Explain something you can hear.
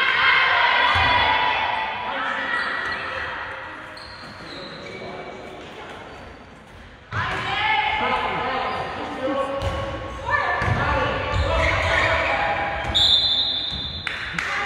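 Players' shoes squeak on a wooden floor.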